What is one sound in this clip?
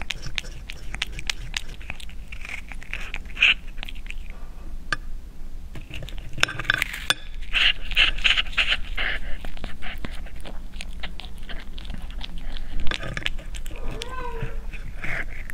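A fork clinks against a bowl.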